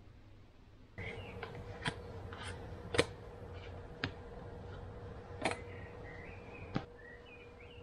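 Playing cards click and snap as a person shuffles and handles them.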